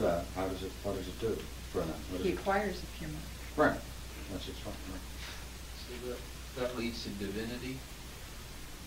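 An elderly man reads aloud calmly.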